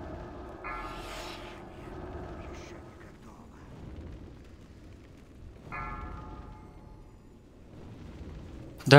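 Magical spell effects chime and whoosh.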